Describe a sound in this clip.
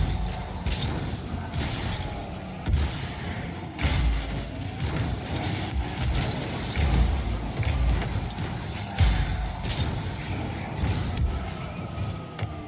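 A video game car engine roars and boosts.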